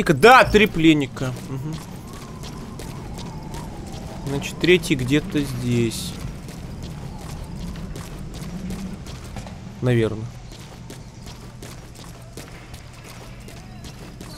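Footsteps patter quickly on a hard floor.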